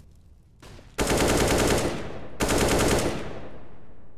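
Rifle gunfire rings out in loud bursts.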